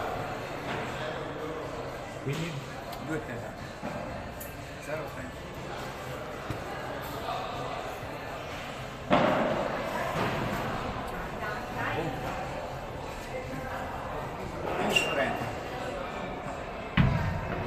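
Sneakers squeak and shuffle on a hard court.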